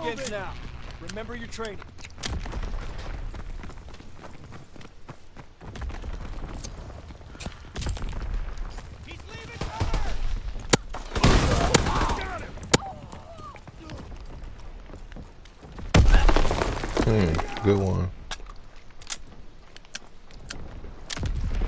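Shotgun shells click as they are loaded into a gun.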